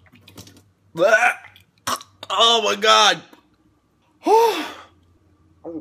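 A young man wails and groans loudly.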